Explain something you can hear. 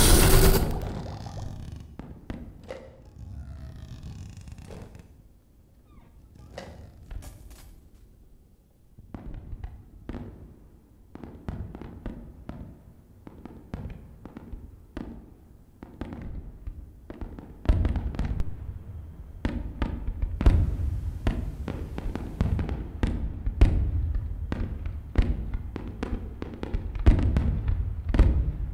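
Objects knock and clatter on a table.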